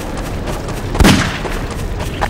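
A single gunshot bangs sharply.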